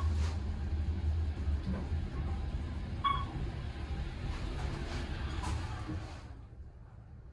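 An elevator hums and rumbles as it moves.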